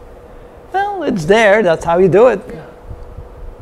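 A middle-aged man speaks animatedly into a close microphone.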